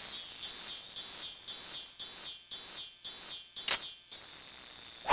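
An electronic meter beeps in a quick, steady rhythm.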